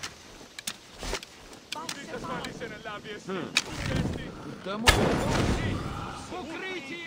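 A sword clashes and strikes in a brief fight.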